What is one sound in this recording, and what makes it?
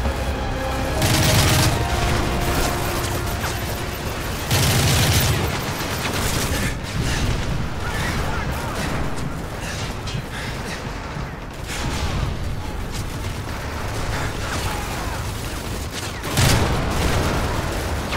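Explosions boom loudly nearby.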